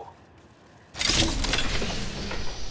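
A metal crate clanks open.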